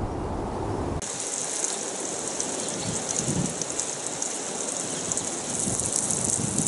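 Water sprays steadily from a hose onto gravel and wood.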